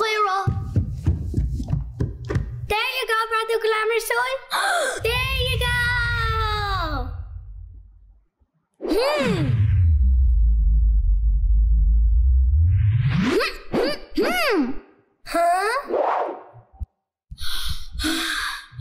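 A young girl sings cheerfully over music.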